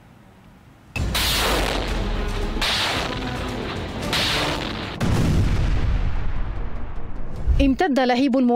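An explosion booms and rumbles outdoors.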